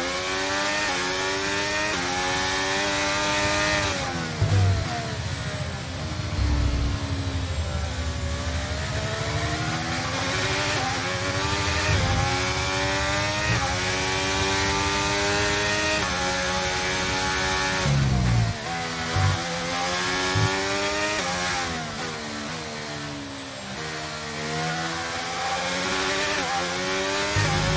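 A Formula One car's turbocharged V6 engine revs high and shifts up and down through the gears.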